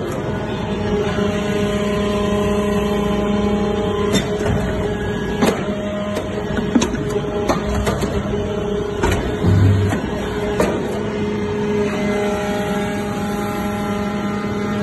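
A hydraulic metal briquetting press hums and whines as it runs.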